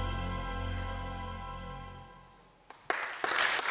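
A sustained musical chord rings out in a large hall and fades away.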